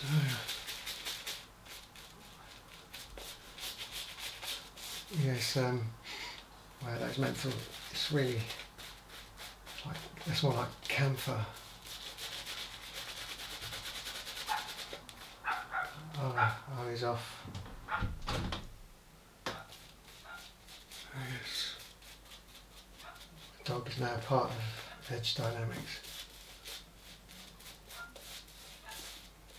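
A shaving brush swishes and scrubs against stubble.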